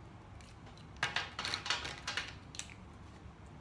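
Plastic markers rattle as a hand sorts through them.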